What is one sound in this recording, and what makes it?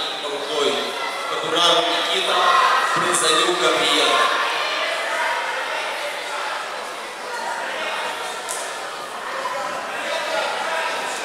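A crowd of spectators murmurs and shouts in a large echoing hall.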